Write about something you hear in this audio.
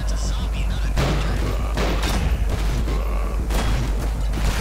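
Gunshots from a pistol ring out sharply in an echoing room.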